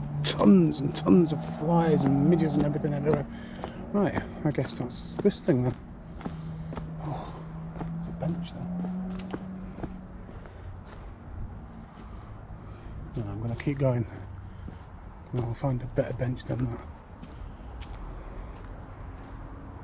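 Footsteps crunch on a dry leafy dirt path.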